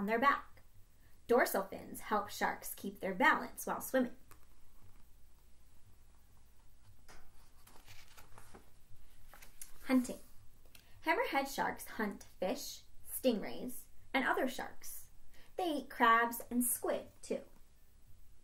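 A young woman reads aloud expressively, close by.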